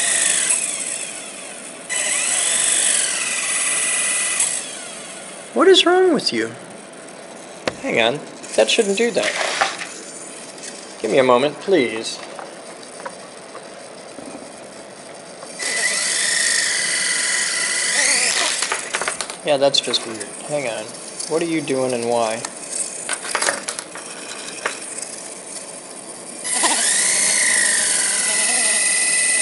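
A small electric motor whines at a high pitch and spins up and down.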